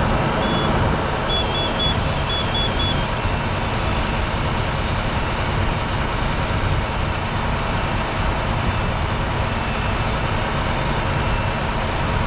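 Water from a fire hose sprays hard in a loud steady hiss.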